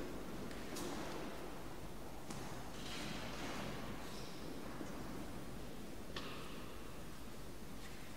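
Footsteps shuffle across a stone floor, echoing.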